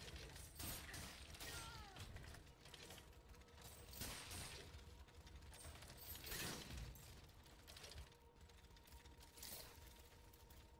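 Blades swish and strike in sharp bursts.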